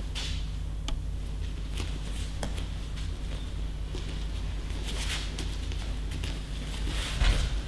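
Bare feet shuffle and thump softly on a mat in a large echoing hall.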